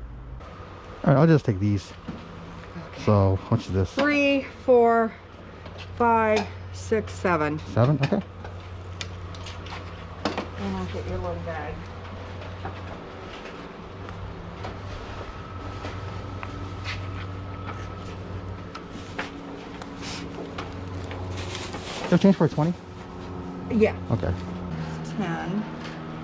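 A middle-aged woman talks close by.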